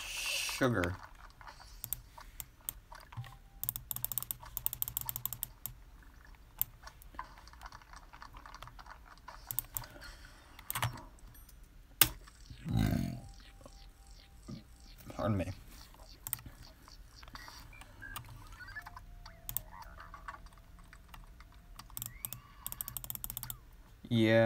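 Video game sound effects blip and click in quick bursts.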